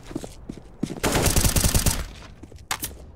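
A rifle fires a loud rapid burst.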